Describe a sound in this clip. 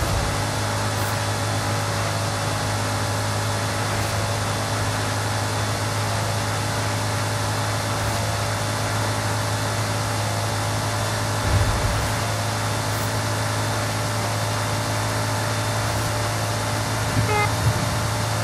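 A car engine roars steadily at very high speed.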